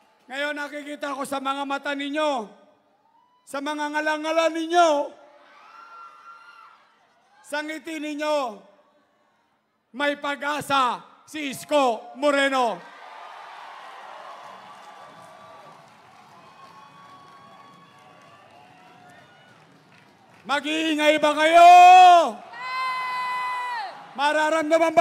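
A man shouts through a loudspeaker to a crowd with great energy, echoing outdoors.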